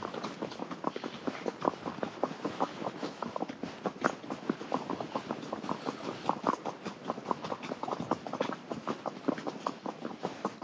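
A horse's hooves clop steadily on a gravel track.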